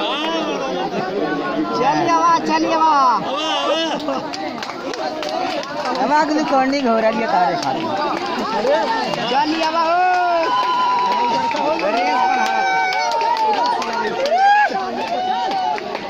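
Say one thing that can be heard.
A large crowd of people shouts and chatters outdoors.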